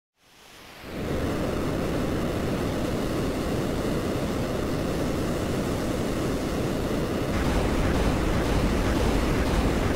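A low wind roars steadily and grows louder near the end.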